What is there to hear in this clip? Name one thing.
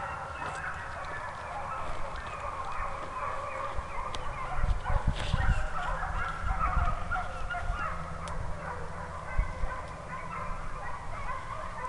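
Wind gusts across the microphone outdoors, rumbling low.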